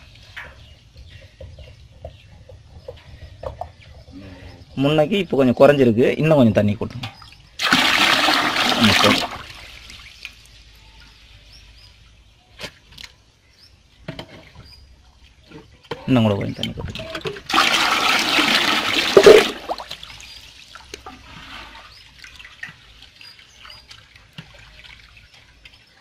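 Water sloshes and splashes as a hand moves through it.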